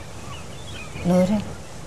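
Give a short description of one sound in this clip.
A woman speaks briefly in a low voice.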